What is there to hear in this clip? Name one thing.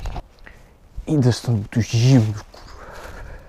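A young man talks with animation close to the microphone, outdoors.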